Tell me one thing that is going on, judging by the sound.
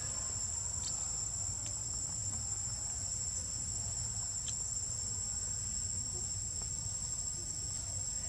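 A monkey chews and bites into soft fruit up close.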